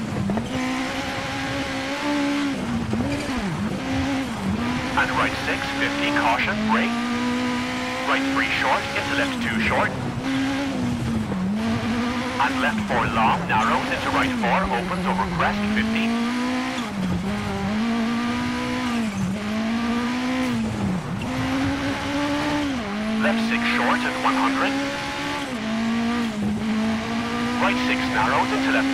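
A rally car engine revs hard, dropping briefly with each gear change.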